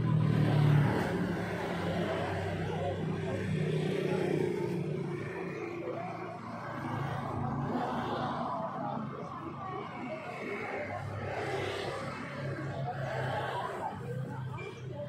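Women chatter close by, outdoors.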